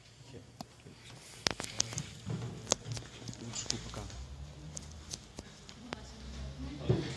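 A man talks quietly nearby.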